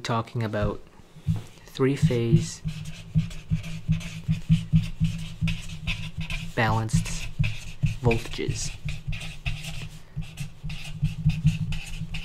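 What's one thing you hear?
A marker squeaks and scratches across paper.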